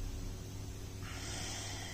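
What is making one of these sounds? A man breathes in sharply through his nose.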